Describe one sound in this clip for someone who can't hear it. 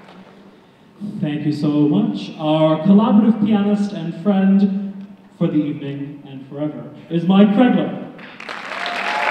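A man speaks with animation into a microphone in a large hall.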